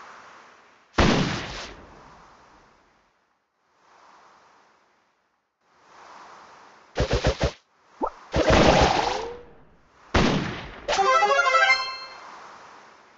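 Short game blasts and bursts go off in quick runs.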